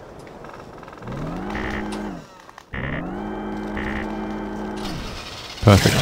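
A truck's starter motor whines as the engine tries to start.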